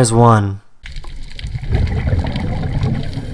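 Air bubbles gurgle and rumble from a diver's breathing gear underwater.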